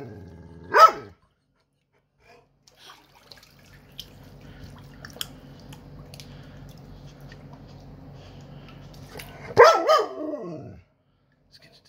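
A dog whines in short high bursts.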